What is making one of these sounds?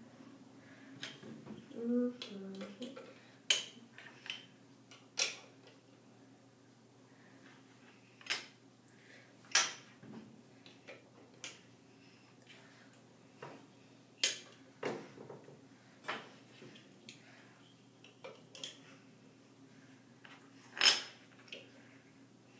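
Wooden blocks knock and clack as they are stacked.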